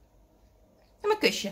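A parrot squawks and chatters loudly up close.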